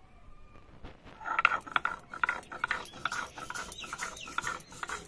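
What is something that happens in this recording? A stone roller scrapes and grinds back and forth on a rough stone slab.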